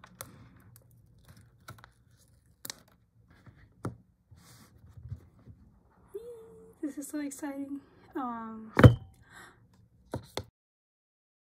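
Cardboard boxes knock and tap on a wooden table.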